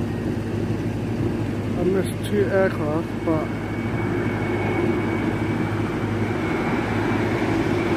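Wind blows steadily outdoors, rustling the trees.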